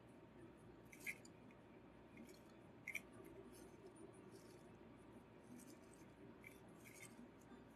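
Small candies tick and clatter as they drop onto a hard surface.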